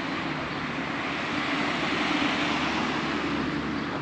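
A car drives past on a street nearby.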